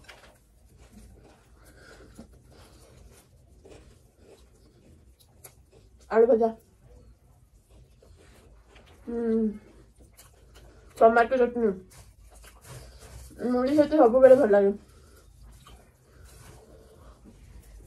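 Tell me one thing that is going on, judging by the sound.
A young woman chews food with soft, wet smacking sounds close to a microphone.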